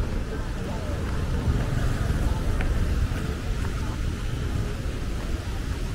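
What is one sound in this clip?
A motorbike engine hums as it passes close by.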